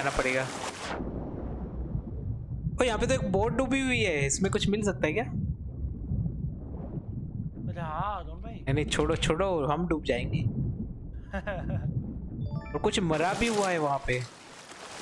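Water rumbles, deep and muffled, as if heard underwater.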